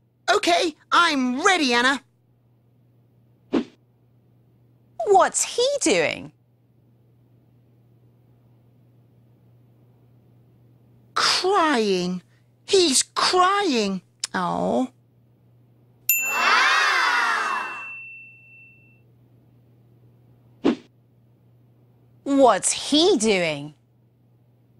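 A young woman speaks brightly and clearly, close to a microphone.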